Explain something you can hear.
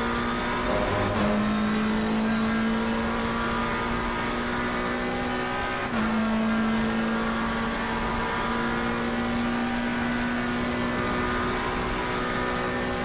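A racing car engine roars at high speed, its pitch climbing slowly and dropping suddenly at each gear change.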